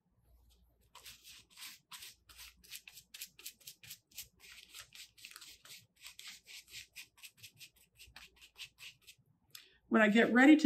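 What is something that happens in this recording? A paintbrush dabs and scratches on paper in quick, repeated strokes.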